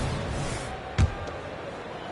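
A basketball bounces once on a hardwood court.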